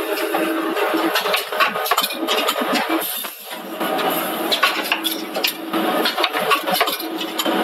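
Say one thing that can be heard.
Metal cans clatter and clink against each other on a conveyor.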